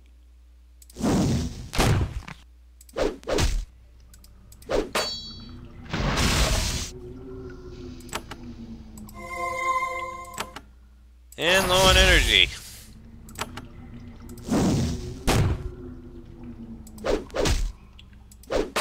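Magic spells burst with loud whooshing blasts.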